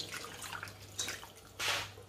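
Thick sauce pours and splatters into a pot.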